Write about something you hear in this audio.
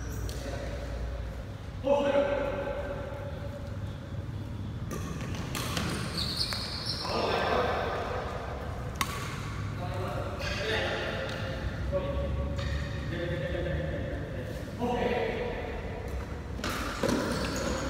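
Badminton rackets hit a shuttlecock back and forth with sharp pops.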